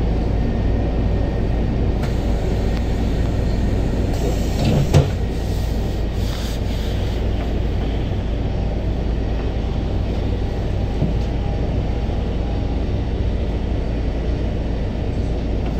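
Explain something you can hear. Cars drive past nearby on a busy street.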